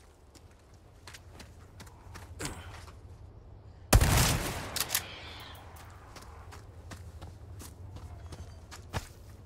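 Footsteps run over dirt.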